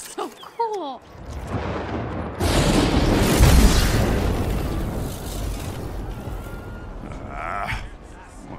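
A loud rumbling whoosh swells and slowly fades.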